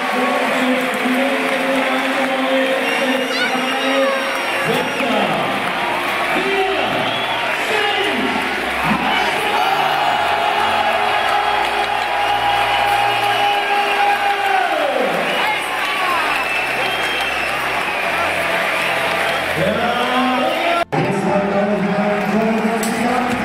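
A large crowd of fans chants and sings loudly in a stadium.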